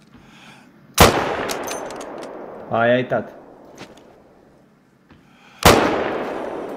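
A rifle fires a loud shot that echoes away across open ground.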